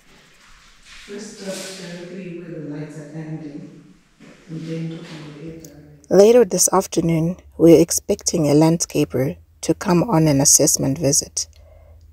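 A young woman speaks with animation, close to a microphone.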